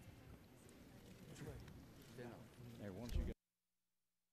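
A crowd of men and women chatter and murmur all at once in a large room.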